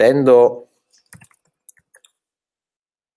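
Keys clack on a keyboard.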